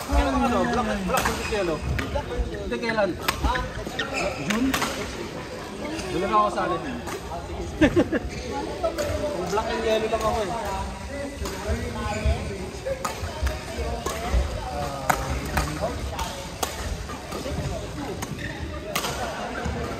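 Men talk and call out across a large echoing hall.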